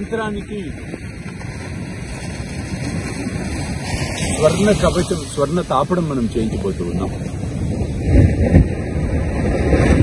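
Waves wash gently onto a shore nearby.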